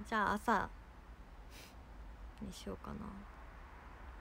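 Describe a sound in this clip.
A young woman speaks briefly and softly, close to the microphone.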